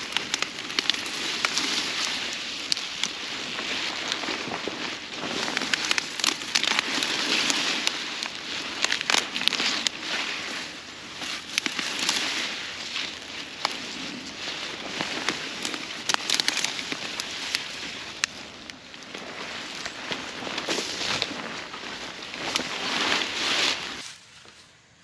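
Leafy plants rustle and swish close by.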